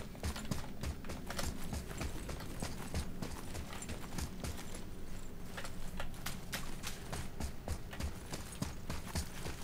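Heavy footsteps run over rubble and stone at a steady pace.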